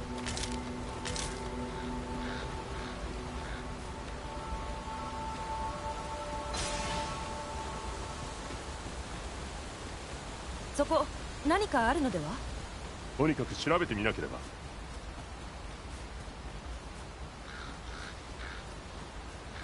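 Footsteps tread steadily over stone and grass.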